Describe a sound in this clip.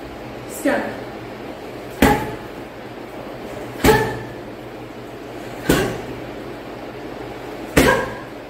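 Kicks thud heavily against a punching bag at a steady pace.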